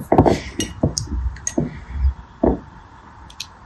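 Gel beads clack and squish as fingers stir them.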